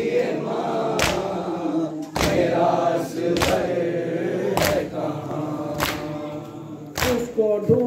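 Hands beat on chests in a slow, steady rhythm.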